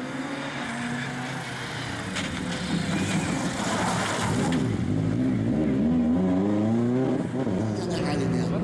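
A rally car engine roars and whines as the car speeds past.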